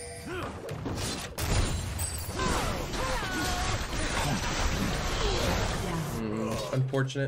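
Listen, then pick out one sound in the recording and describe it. Game combat sound effects clash and whoosh.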